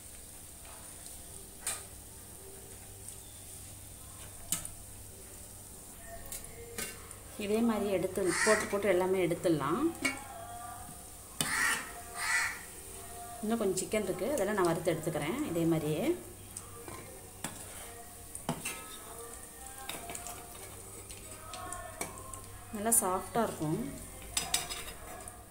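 Hot oil sizzles and bubbles steadily.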